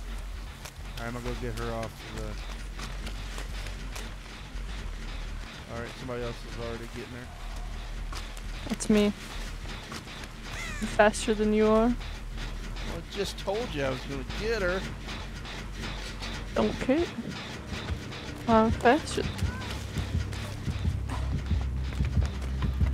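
Footsteps run quickly through grass and undergrowth.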